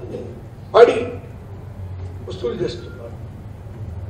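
An elderly man speaks calmly into a microphone, in short bursts.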